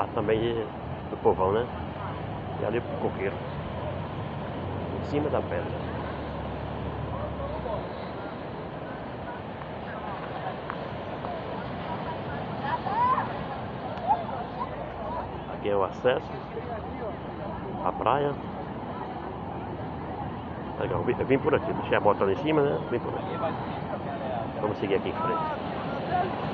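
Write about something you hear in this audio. Adults talk and call out nearby outdoors.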